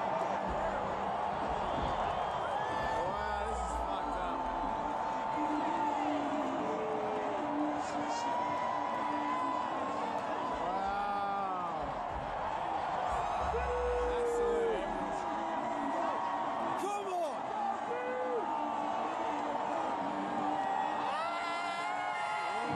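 A huge stadium crowd roars and cheers.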